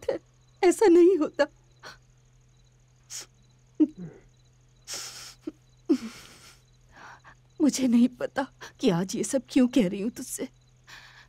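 A middle-aged woman speaks emotionally, close by.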